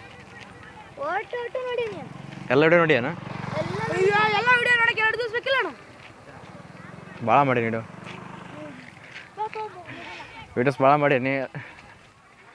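A boy talks close by.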